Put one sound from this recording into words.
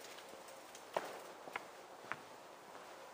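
Close handling knocks and bumps sound a few times.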